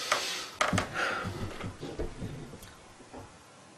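An elderly man speaks calmly and clearly, close by.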